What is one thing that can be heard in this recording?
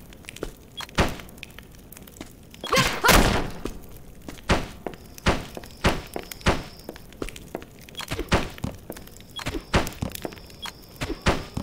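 Blocks knock and thud into place again and again.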